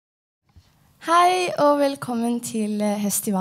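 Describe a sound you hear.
A young woman sings into a microphone over loudspeakers.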